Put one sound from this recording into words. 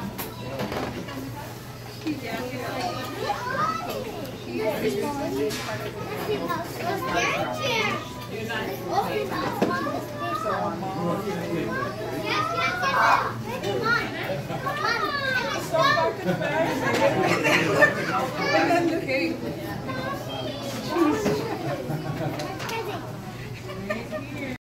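Paper gift bags rustle and crinkle as a boy pulls out presents.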